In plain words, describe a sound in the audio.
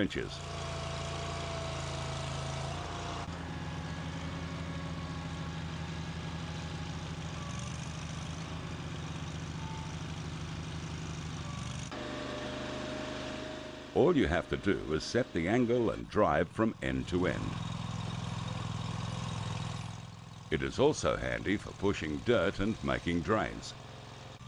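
A small engine runs with a steady low hum.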